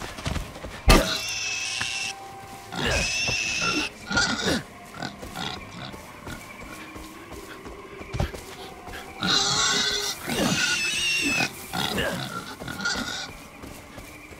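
A pig squeals loudly.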